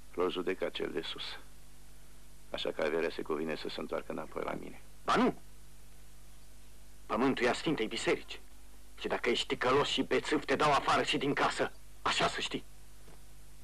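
Men speak sternly, in turn, close by.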